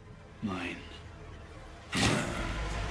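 A man speaks in a low, tense voice close by.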